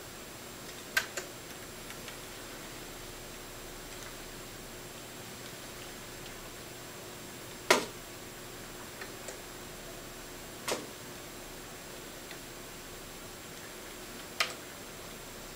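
Keys click sharply now and then.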